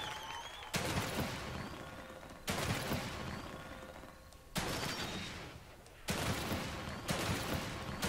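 Loud gunshots boom in sharp bursts, each ringing out and slowly fading.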